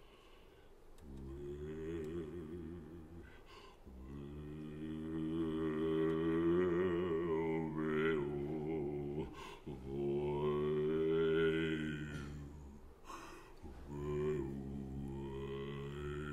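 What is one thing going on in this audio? An accordion holds sustained chords.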